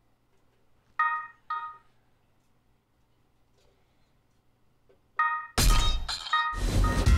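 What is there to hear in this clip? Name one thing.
Short bright electronic chimes ring out as menu buttons are tapped.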